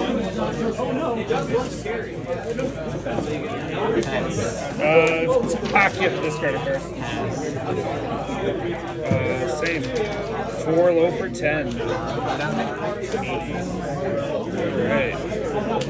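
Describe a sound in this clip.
Playing cards slide and tap softly on a play mat.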